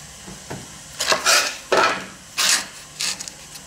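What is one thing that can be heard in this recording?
A wooden board slides and scrapes across a metal bench.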